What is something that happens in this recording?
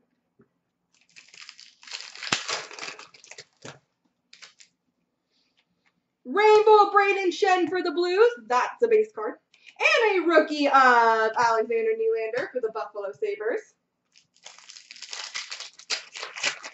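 A plastic wrapper crinkles as hands tear open a pack of cards.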